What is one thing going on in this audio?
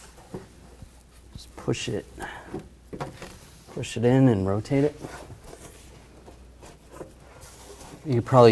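Plastic trim creaks and rattles as it is pulled loose.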